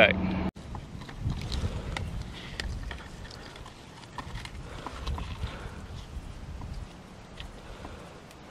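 A metal strap clicks and rattles against a tree trunk.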